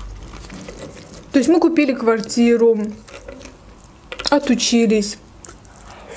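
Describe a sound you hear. A tortilla wrap crinkles in a young woman's hands.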